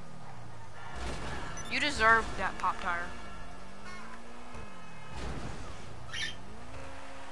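A car crashes and scrapes against another car.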